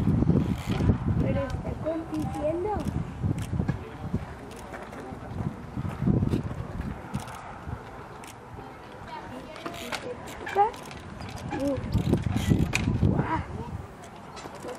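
A bicycle's tyres thump and scrape on rock as a rider hops in place.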